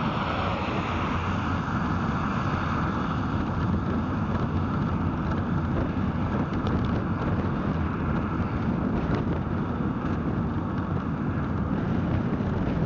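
Tyres roar on the road surface.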